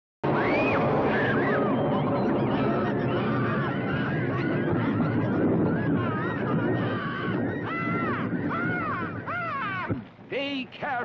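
A crowd of children and adults chatters and exclaims excitedly.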